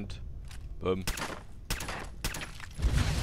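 A silenced pistol fires several sharp shots.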